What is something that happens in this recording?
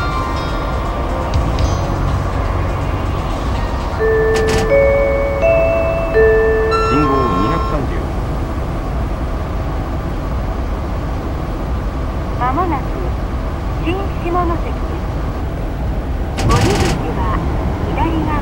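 A high-speed train rumbles steadily along the rails.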